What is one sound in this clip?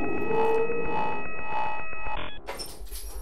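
An electronic machine hums with a steady, pulsing tone.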